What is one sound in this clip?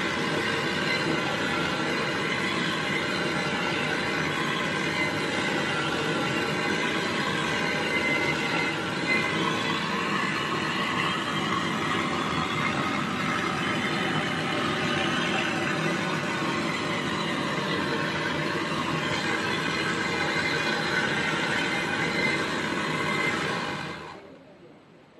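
A gas torch roars steadily at close range, then cuts off.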